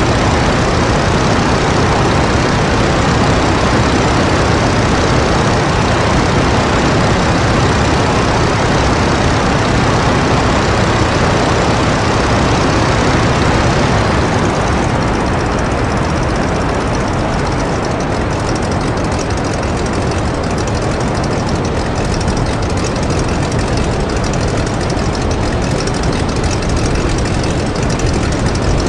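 A propeller engine roars steadily, a little quieter after a while.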